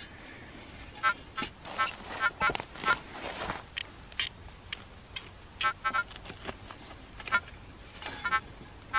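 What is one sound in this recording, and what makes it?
A spade cuts and scrapes into dry soil.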